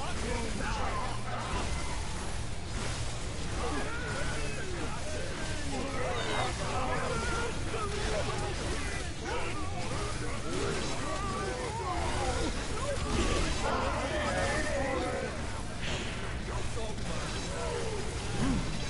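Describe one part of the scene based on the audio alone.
Magic blasts and hits crackle from a game.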